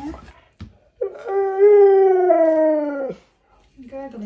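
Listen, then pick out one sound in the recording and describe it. A husky howls loudly, its voice gliding down.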